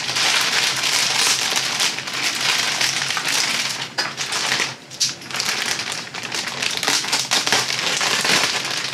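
Plastic wrapping crinkles and rustles loudly close by.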